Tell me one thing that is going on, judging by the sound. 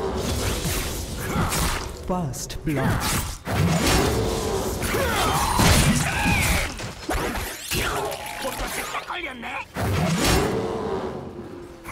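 Spell blasts crackle and boom in a busy battle.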